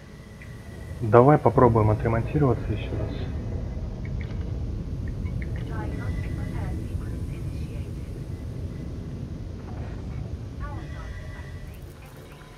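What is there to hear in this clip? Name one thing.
A spaceship's engine rumbles low and steady.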